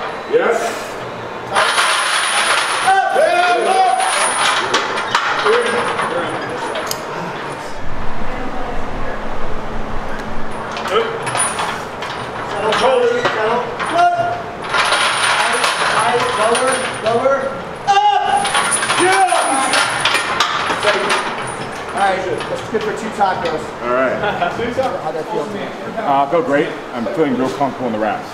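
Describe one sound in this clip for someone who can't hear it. Several men shout encouragement close by.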